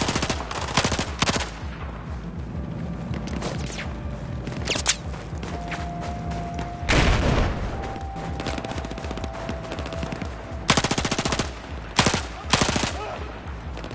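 Rapid gunfire bursts from a rifle close by.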